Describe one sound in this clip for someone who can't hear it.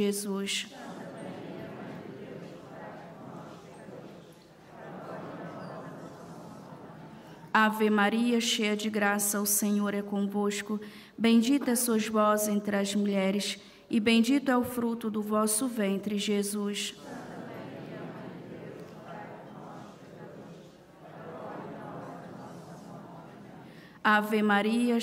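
An elderly man chants prayers through a loudspeaker in a large echoing space.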